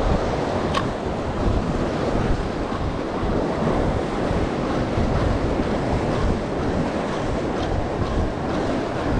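Waves churn and splash against a moving boat.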